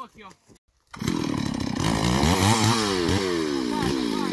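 A chainsaw runs loudly close by.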